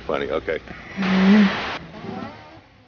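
Television static hisses briefly.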